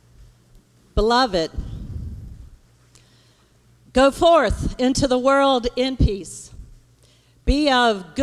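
A woman speaks with passion through a microphone in a large echoing hall.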